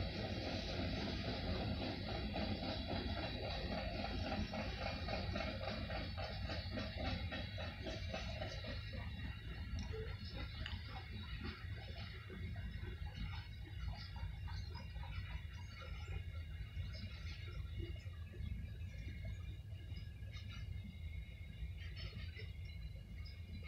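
A freight train rumbles past with clattering wheels.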